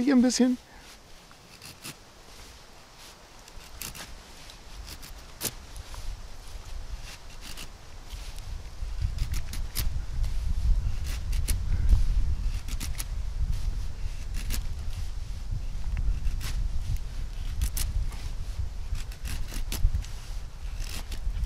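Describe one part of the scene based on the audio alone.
A knife scrapes and shaves thin curls from a stick.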